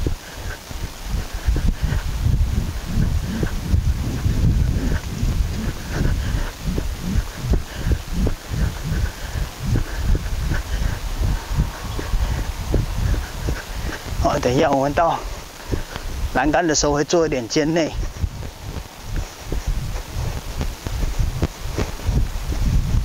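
A horse's hooves thud softly on loose dirt at a trot.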